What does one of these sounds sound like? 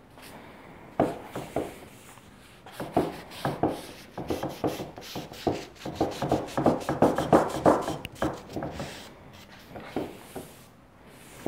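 A stiff brush scrapes back and forth over rough wood in quick strokes.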